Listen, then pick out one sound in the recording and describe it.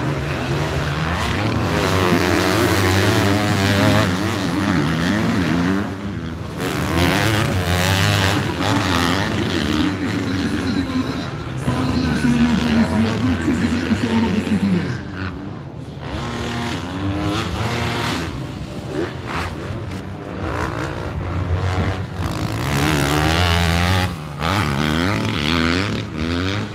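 Dirt bikes rev hard as they race past.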